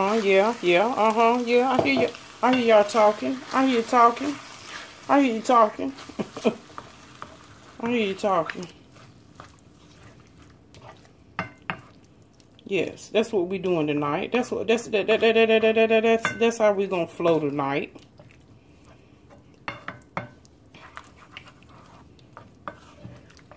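A wooden spoon stirs ground meat and cheese sauce in a frying pan, scraping and tapping.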